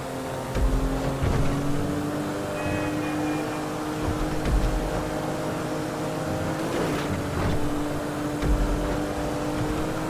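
A video game car engine hums while cruising.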